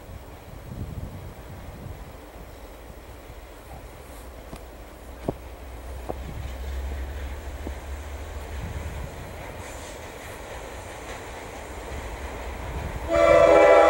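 A diesel train rumbles as it approaches from a distance.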